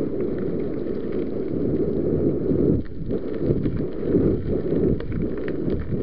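Wind rumbles loudly against the microphone.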